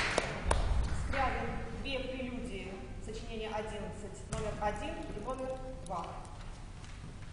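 A young woman announces clearly into a large, echoing hall.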